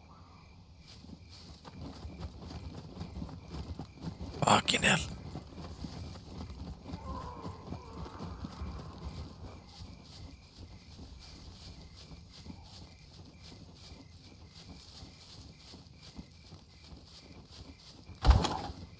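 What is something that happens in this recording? A person walks with steady footsteps through tall grass.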